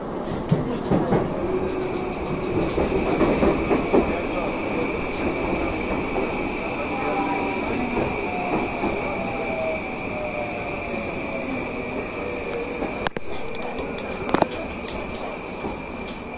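A train rumbles and hums steadily along the track.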